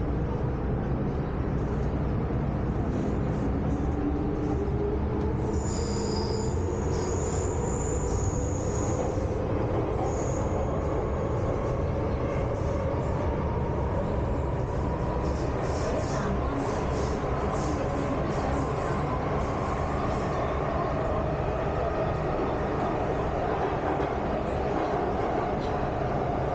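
Train wheels squeal and hum against the rails.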